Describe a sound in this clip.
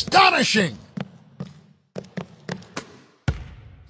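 A basketball bounces on a hard court in quick, sharp thuds.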